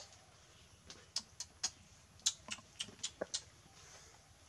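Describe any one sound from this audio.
Plastic clicks and rattles as a bottle is handled.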